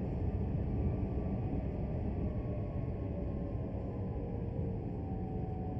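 An electric motor whines and slowly falls in pitch as a train slows.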